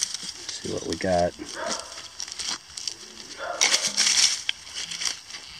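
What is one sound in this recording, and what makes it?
A trowel scrapes and digs into dry soil.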